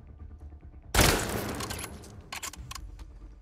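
A rifle fires a single loud shot that echoes briefly.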